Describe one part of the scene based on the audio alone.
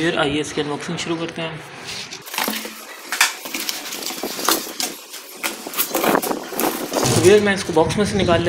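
Cardboard scrapes and rustles as a box is opened up close.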